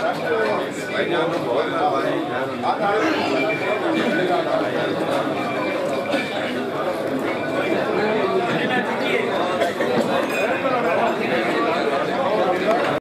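A crowd of men chatter and greet each other with many overlapping voices.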